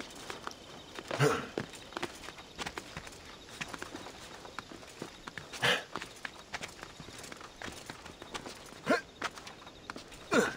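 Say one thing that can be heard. Hands and feet scrape and knock against rock as a climber climbs.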